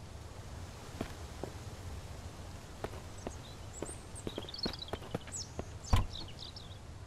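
Footsteps crunch on dry ground outdoors.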